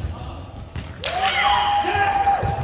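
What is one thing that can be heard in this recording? A young man shouts out loudly in an echoing hall.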